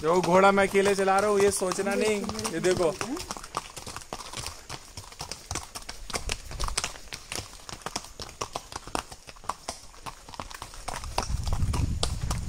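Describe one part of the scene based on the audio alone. Horse hooves clop on a dirt trail.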